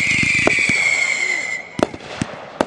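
A firework whistles shrilly and steadily, then stops.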